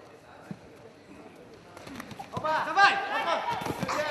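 Wrestlers' bodies thud onto a mat.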